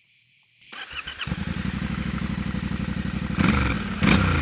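A motorcycle engine starts and idles.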